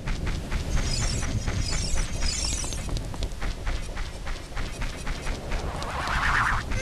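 Quick footsteps patter steadily on grass and stone.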